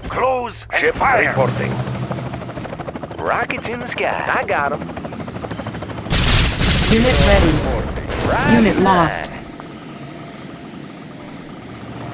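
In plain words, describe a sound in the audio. Weapons fire and blasts crackle in a game battle.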